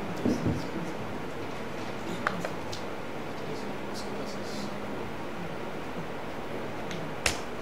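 A young man speaks quietly into a microphone.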